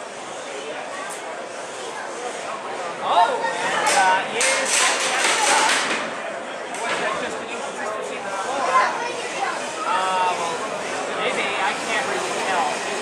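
A crowd of children and adults chatters and shouts excitedly nearby.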